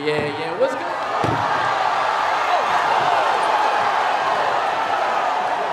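A crowd shouts and clamors in a large echoing hall.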